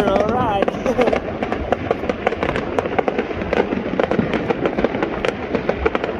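Fireworks crackle and pop rapidly in the distance.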